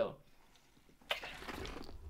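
A man gulps a drink from a bottle.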